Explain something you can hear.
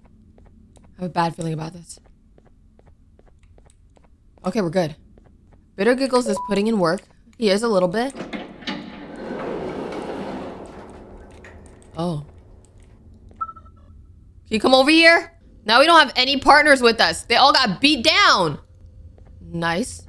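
A young woman talks with animation close to a microphone, in short bursts.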